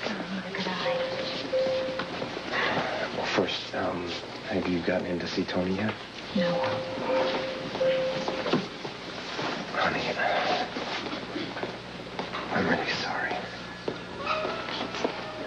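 A man talks quietly and earnestly close by.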